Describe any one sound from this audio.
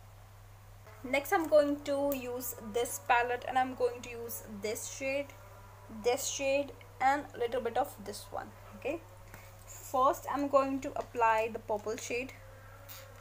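A young woman talks with animation, close to a clip-on microphone.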